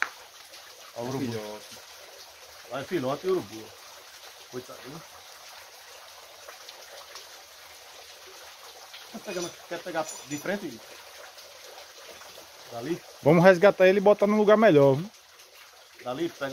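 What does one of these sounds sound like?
A man talks nearby in short bursts.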